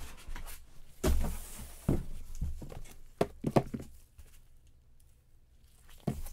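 Small boxes clatter as they are shifted.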